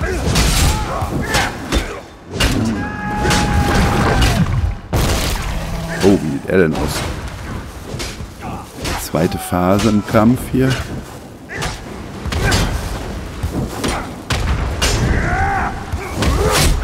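Weapons strike with heavy, sharp blows.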